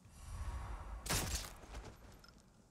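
A suppressed rifle fires once with a sharp crack that echoes.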